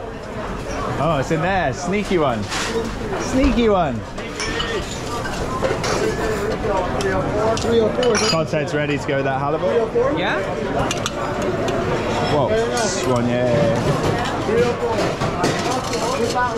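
Many people chatter in a busy, lively room.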